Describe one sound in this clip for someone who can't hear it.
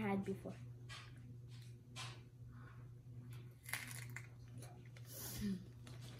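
A young girl crunches on a crisp vegetable.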